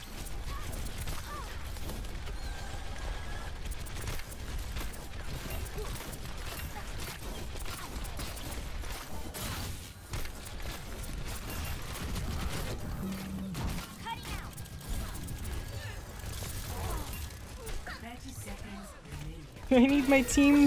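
Rapid gunfire crackles with loud blasts and impacts.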